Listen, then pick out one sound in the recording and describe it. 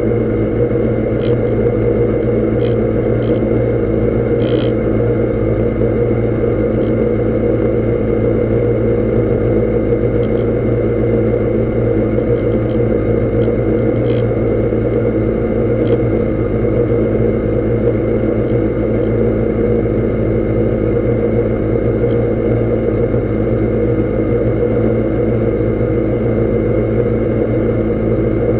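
A race car engine idles loudly and steadily close by.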